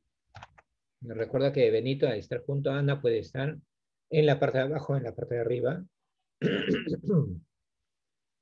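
A man speaks calmly through a microphone, as if on an online call.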